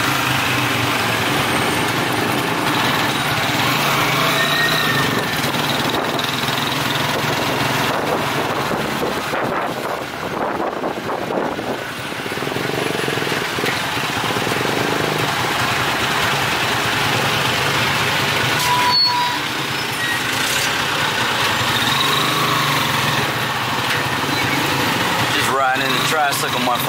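Street traffic rumbles steadily outdoors.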